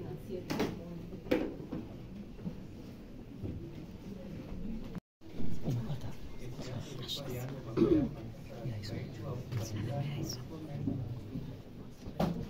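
A crowd of men and women murmurs and talks nearby in a busy room.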